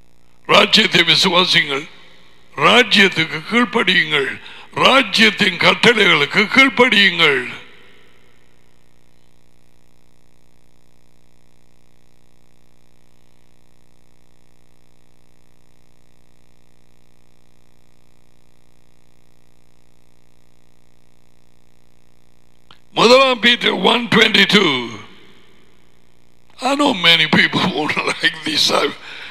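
A middle-aged man speaks with animation into a close microphone, with long pauses.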